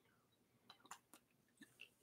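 A man gulps a drink from a bottle.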